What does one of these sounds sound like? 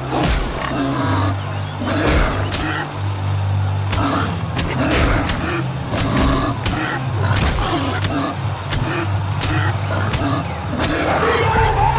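A wild boar grunts and squeals.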